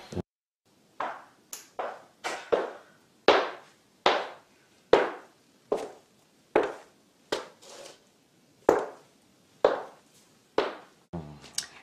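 Heels click steadily on a hard floor.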